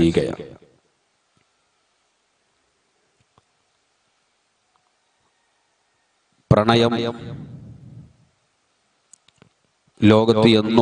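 A man speaks slowly into a microphone, in bursts with long pauses, with some echo.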